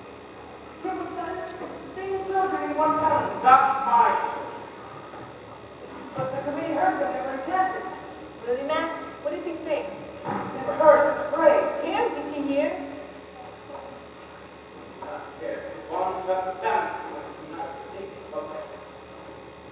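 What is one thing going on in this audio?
A young woman speaks on stage, heard from a distance.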